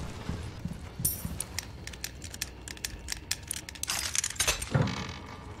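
A stone puzzle mechanism clicks as its parts turn.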